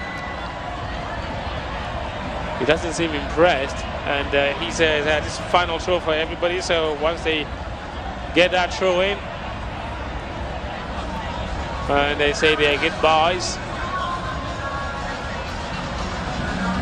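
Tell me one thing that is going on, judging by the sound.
A large stadium crowd murmurs in the distance.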